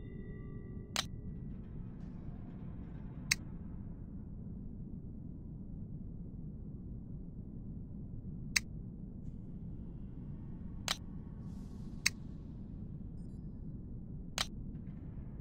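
Game menu clicks sound sharply now and then.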